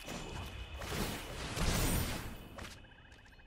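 A magical whoosh sweeps past.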